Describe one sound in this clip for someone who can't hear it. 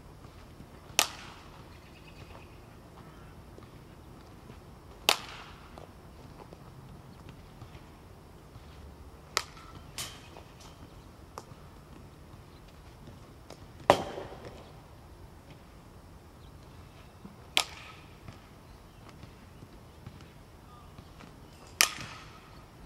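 A bat cracks sharply against a ball, again and again, in the open air.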